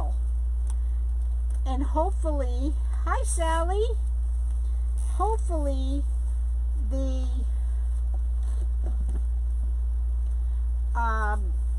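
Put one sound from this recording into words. Stiff tinsel branches rustle as hands bend and twist them.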